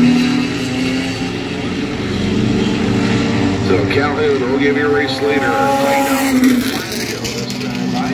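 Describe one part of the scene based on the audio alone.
Race car engines roar steadily around a track outdoors.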